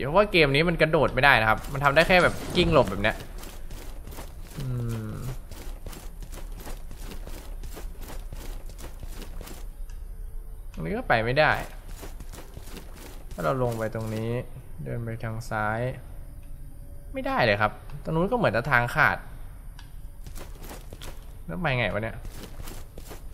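A young man talks into a microphone up close, with animation.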